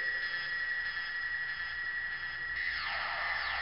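A small synthesizer plays a steady, high electronic tone.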